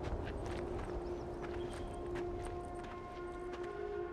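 Footsteps crunch on a dusty roadside.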